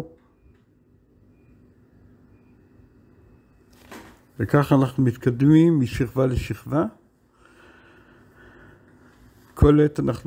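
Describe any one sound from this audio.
A brush strokes softly on canvas.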